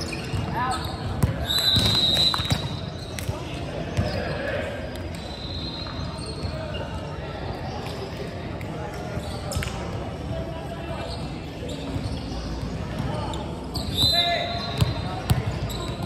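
Players call out and shout to each other in a large echoing hall.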